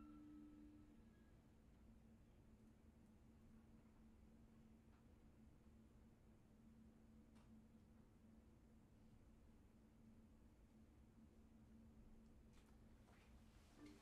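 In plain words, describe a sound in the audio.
A small ensemble plays soft, sustained music.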